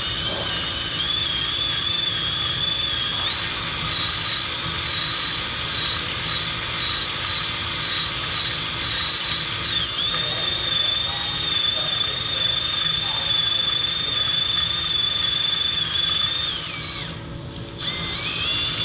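Coolant splashes inside a machine enclosure.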